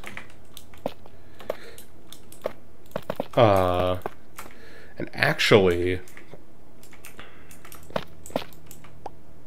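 Blocks are placed with short, soft clicking thuds.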